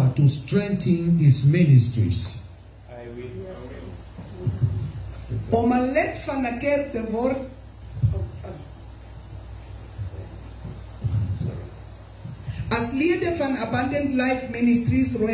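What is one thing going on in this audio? A man speaks over a microphone and loudspeakers with animation.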